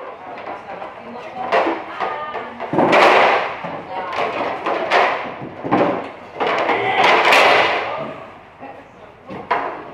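Plastic chairs clatter and knock together as they are stacked.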